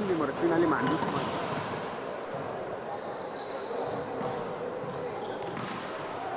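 A small crowd murmurs faintly in a large echoing hall.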